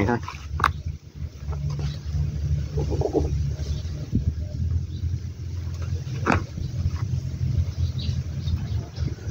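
Hands rustle and crumble loose dry bark mix in a pot.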